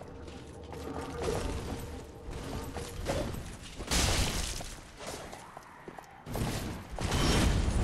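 A sword swings and slashes through the air.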